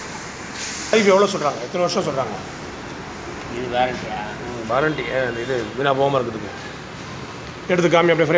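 A man talks.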